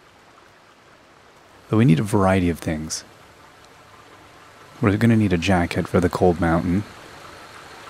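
Water splashes steadily down a small waterfall.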